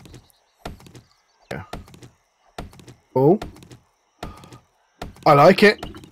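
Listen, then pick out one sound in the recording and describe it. An axe chops into a tree trunk with sharp knocks.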